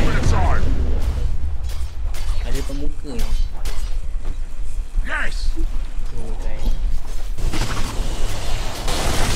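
Fantasy battle effects crackle, whoosh and thud in quick bursts.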